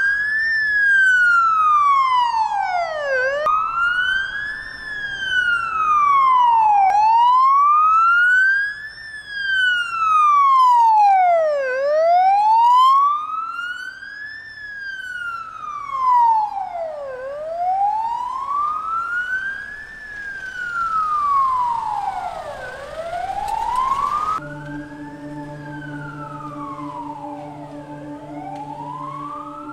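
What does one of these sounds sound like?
A siren wails steadily, rising and falling close ahead.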